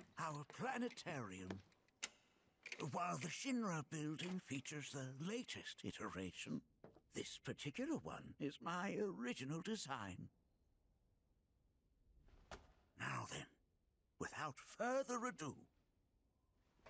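An elderly man speaks calmly and proudly.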